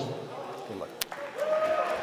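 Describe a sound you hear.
Two men slap hands in a high five.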